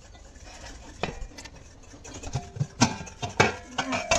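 A metal lid clanks against a pot.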